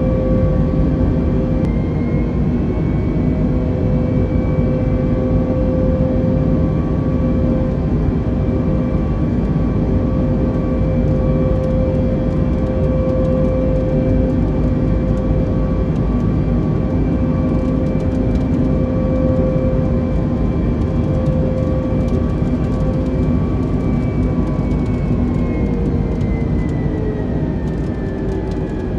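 Jet engines roar steadily with a loud whine inside an airliner cabin.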